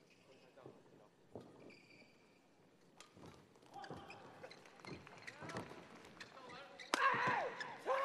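Rackets strike a shuttlecock in a quick rally in a large echoing hall.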